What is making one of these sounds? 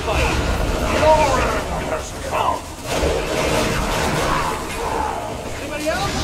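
Punches and blasts crash in a fight.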